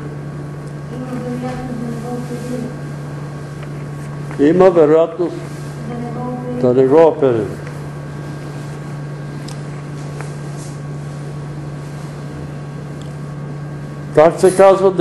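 An elderly man speaks slowly in short bursts with long pauses, in an echoing room.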